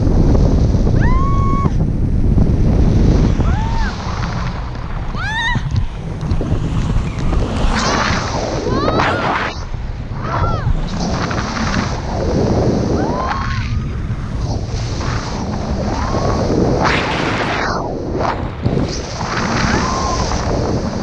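A young woman squeals and laughs with excitement.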